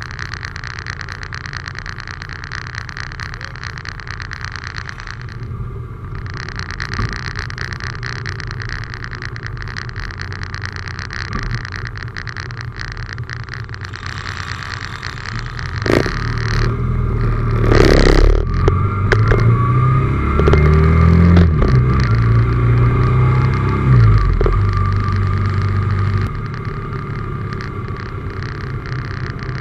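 Wind rushes and buffets past outdoors.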